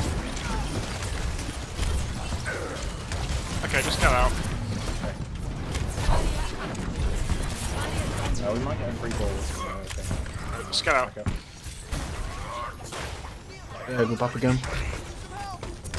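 A heavy weapon fires repeated sharp blasts.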